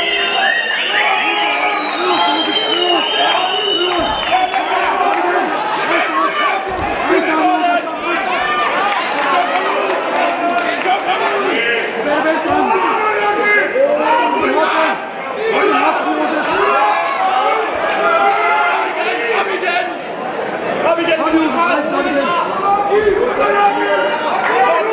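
A crowd shouts and cheers loudly in a large hall.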